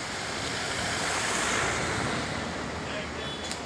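A bus drives past close by.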